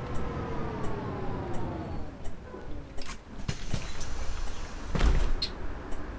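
Bus doors hiss and clunk open.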